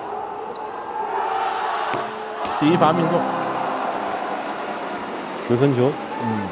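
A crowd cheers loudly after a made free throw.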